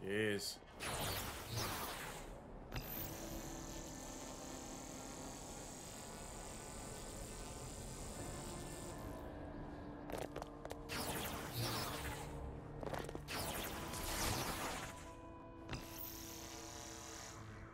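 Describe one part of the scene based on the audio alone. Bright energy bursts whoosh and crackle in quick rushes.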